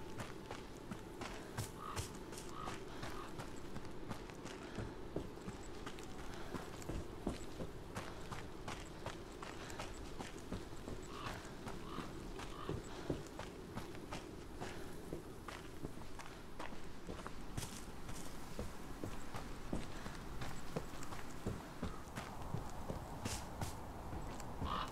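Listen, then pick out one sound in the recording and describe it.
Footsteps crunch slowly on a dirt and gravel path.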